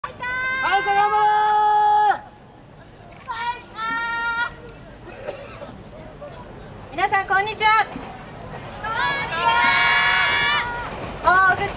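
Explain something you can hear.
A group of young dancers shout long, drawn-out calls together outdoors.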